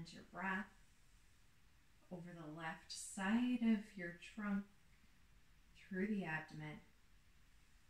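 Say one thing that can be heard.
A woman speaks calmly and softly, close by.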